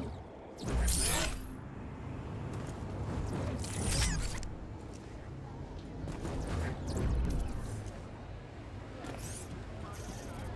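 Whooshing game sound effects swish by as a character leaps and flies.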